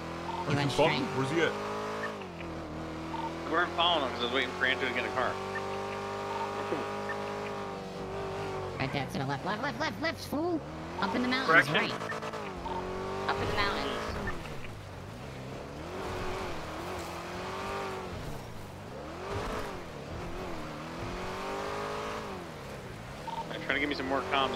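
A car engine hums and revs up and down as a car drives along.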